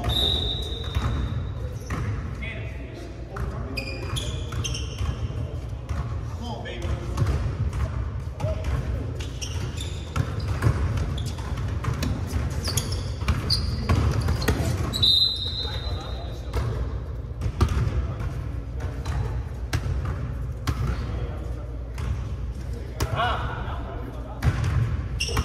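Sneakers squeak sharply on a hard court, echoing in a large hall.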